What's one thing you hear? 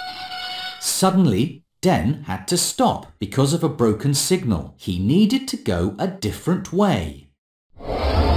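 A man speaks in a worried voice, close by.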